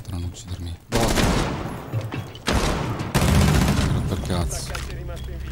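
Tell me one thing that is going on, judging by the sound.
Gunshots and explosions burst loudly.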